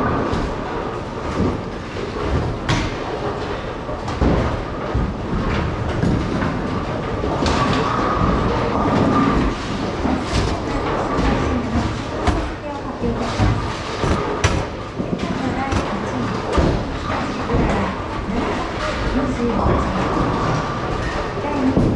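Bowling balls rumble down wooden lanes in a large echoing hall.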